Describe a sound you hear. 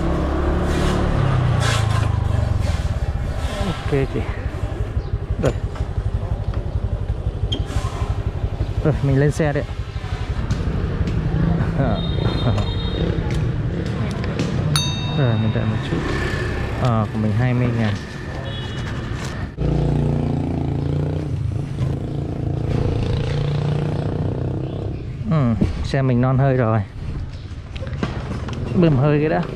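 A motorbike engine runs and hums steadily.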